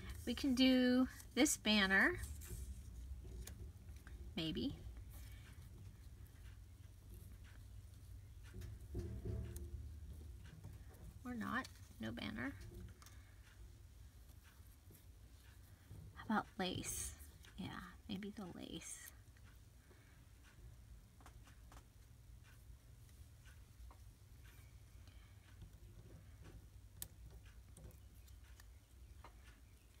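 Paper rustles and crinkles softly close by.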